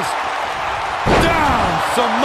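A body slams heavily onto a wrestling ring.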